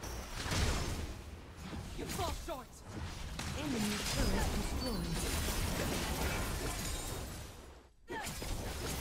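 Game spell effects whoosh and crackle in a fast fight.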